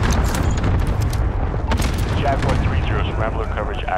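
Rapid gunshots crack nearby.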